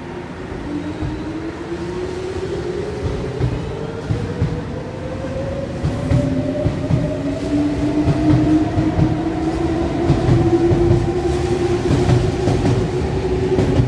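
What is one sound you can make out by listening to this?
Train wheels rumble and clatter on the rails as the train picks up speed.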